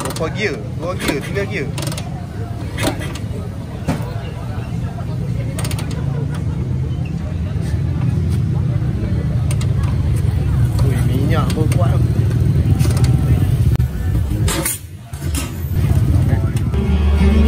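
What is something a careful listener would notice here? An old motorcycle engine idles with a deep, uneven throbbing close by.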